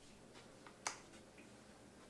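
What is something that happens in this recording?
A switch clicks on an electric kettle.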